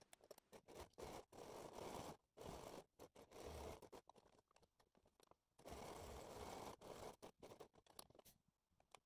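Fabric rustles under hands.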